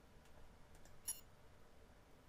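A short bright menu chime sounds once.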